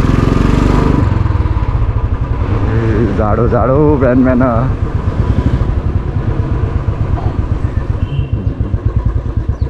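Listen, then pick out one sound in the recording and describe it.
A motorcycle engine rumbles steadily as the bike rides along.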